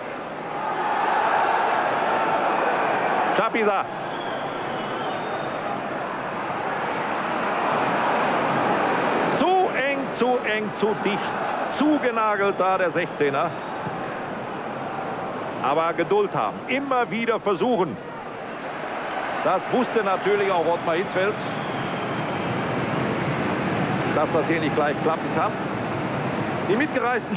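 A large crowd roars and murmurs steadily in an open stadium.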